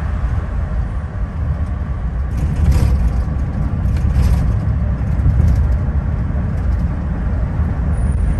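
Wind rushes past an open car window.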